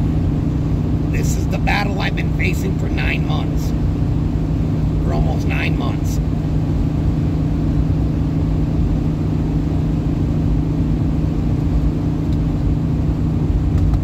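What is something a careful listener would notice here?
A car drives along a paved road, heard from inside the car as a steady low rumble.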